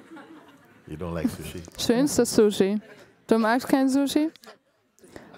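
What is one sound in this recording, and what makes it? A man speaks and laughs into a microphone.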